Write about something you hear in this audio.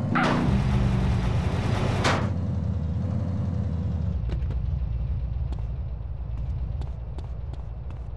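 A car engine rumbles at idle.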